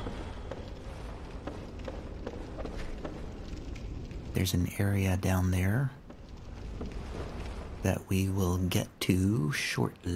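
Armored footsteps run across a stone floor.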